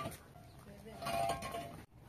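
Concrete blocks clunk as they are set down on a stack.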